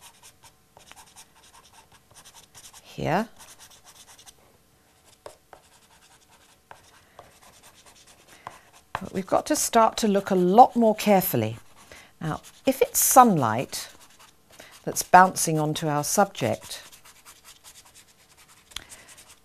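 Pastel chalk scratches and rubs softly on paper.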